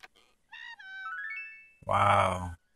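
A short bright chiming jingle plays as a prize pops out.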